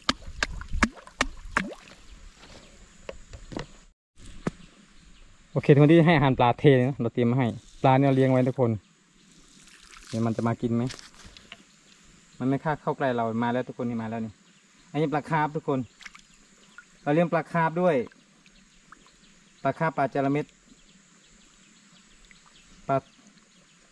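Fish splash and nibble softly at the water's surface.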